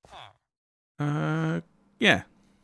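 A game villager grunts with a low nasal hum.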